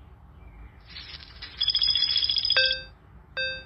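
Coins jingle in a quick shower.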